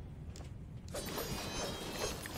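Pottery and debris shatter and clatter.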